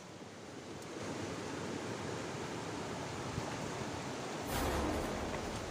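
A shallow river rushes over stones.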